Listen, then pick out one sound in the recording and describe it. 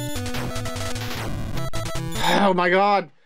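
Chiptune game music plays in quick bleeps.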